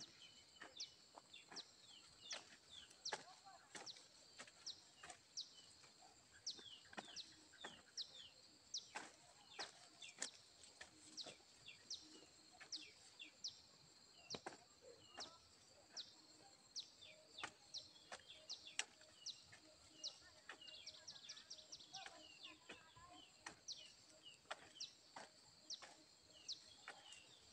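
A hand hoe chops and scrapes into dry soil in quick, repeated strokes.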